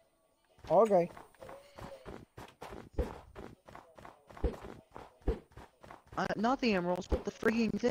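Footsteps crunch over snow.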